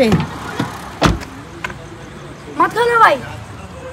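A hand knocks on a car window.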